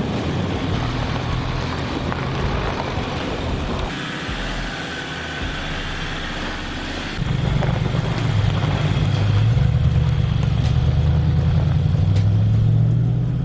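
Tyres crunch over dirt and snow.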